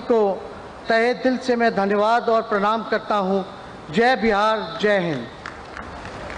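A man speaks into a microphone in a formal, steady voice.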